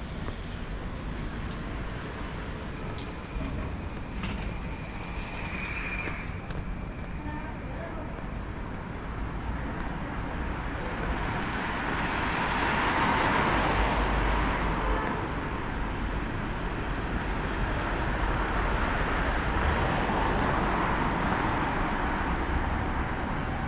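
Traffic hums nearby on a street outdoors.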